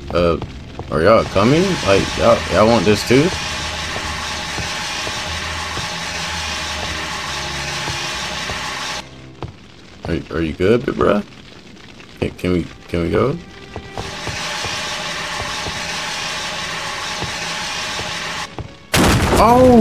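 A fire extinguisher sprays with a steady hiss.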